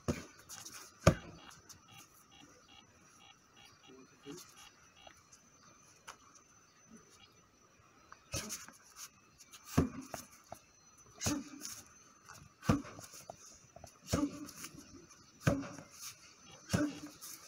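Punches thud sharply against a padded strike shield, outdoors.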